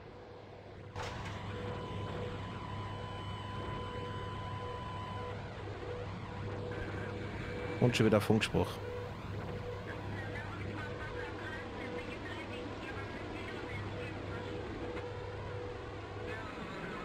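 An electric locomotive hums loudly from inside the cab.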